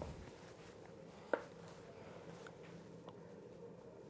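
A wooden spoon scrapes mash from a pot onto a plate.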